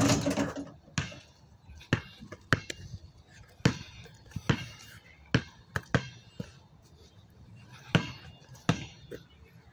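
A basketball bounces repeatedly on hard pavement.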